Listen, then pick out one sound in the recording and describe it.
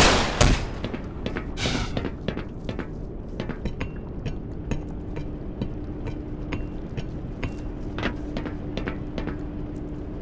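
Footsteps clank on metal ladder rungs.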